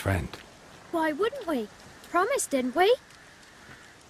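A child speaks excitedly.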